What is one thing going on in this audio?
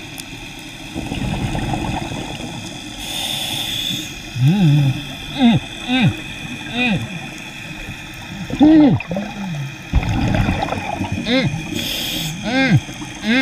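Air bubbles from a diver's breathing rumble and gurgle underwater.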